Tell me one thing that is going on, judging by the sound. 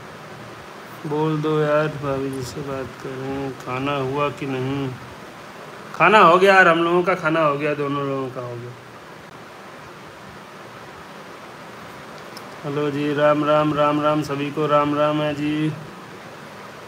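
A young man speaks in short bursts close to the microphone.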